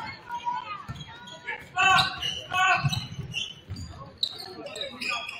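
A crowd murmurs and calls out in a large echoing gym.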